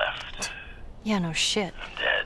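A young girl answers briefly.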